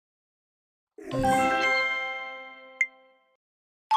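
A cheerful victory chime rings out.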